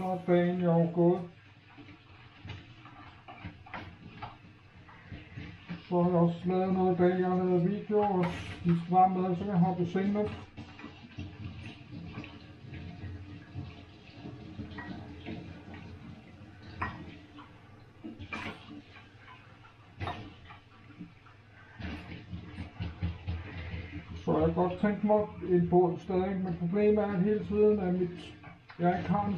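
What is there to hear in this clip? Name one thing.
Dishes clink and clatter in a sink.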